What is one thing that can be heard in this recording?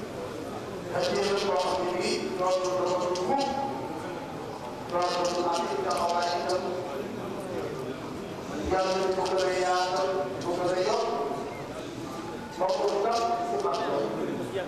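A man chants a prayer in long melodic phrases through a loudspeaker, echoing in a large hall.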